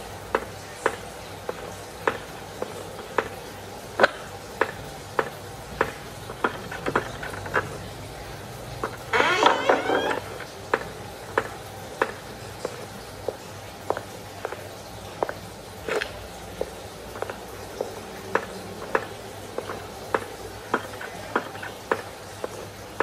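Footsteps thud steadily on wooden floorboards.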